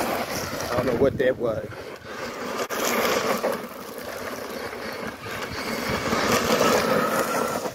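Tyres skid and crunch on loose gravel.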